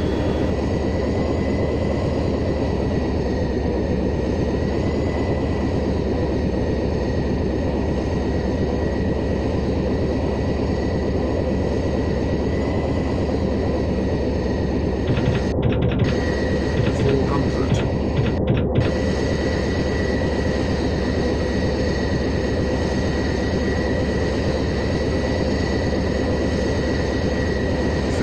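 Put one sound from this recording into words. Propeller engines drone steadily with a loud, even hum.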